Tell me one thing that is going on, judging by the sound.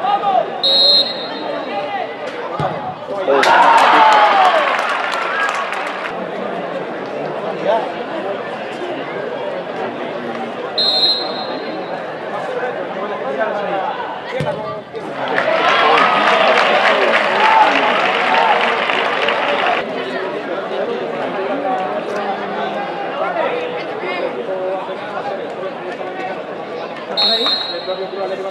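A referee's whistle blows short and sharp.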